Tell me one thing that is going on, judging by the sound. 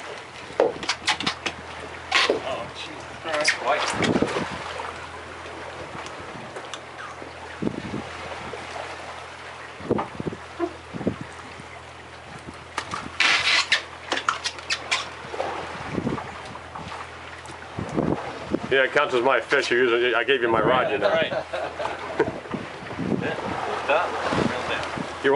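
A fishing reel clicks and whirs as a line is wound in.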